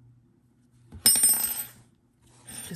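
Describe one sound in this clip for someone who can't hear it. A hand brushes past close by with a loud rustle.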